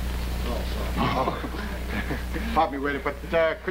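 A middle-aged man speaks in a low voice, heard through an old, hissy recording.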